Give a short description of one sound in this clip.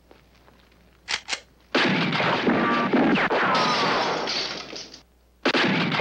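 Gunshots ring out with loud echoes.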